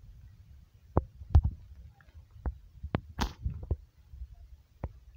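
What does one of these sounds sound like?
Wooden blocks knock softly as they are placed, one after another.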